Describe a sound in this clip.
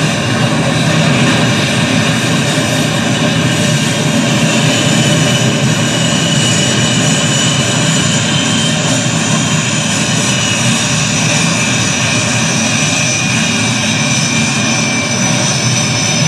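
A jet engine roars steadily, with a high whine.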